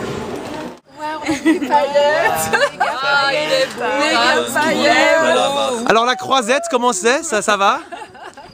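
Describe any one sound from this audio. Women laugh loudly close by.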